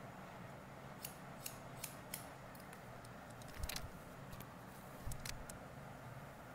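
Scissors snip through hair in short, crisp cuts.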